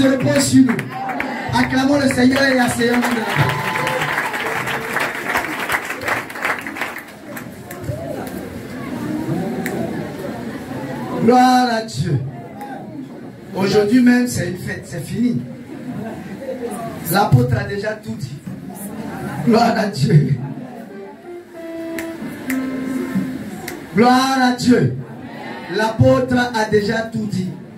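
A man speaks with animation into a microphone, heard through a loudspeaker in an echoing room.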